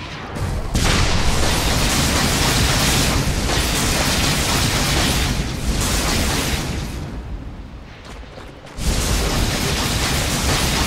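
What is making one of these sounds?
Magical spell effects crackle and burst.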